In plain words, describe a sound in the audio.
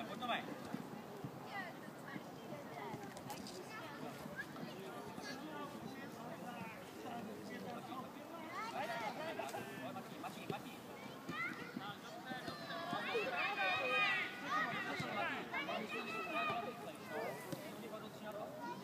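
Young children shout and call out outdoors.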